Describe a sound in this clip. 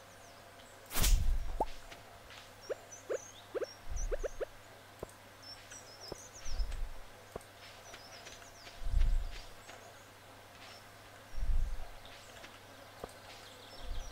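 A man speaks quietly close to a microphone.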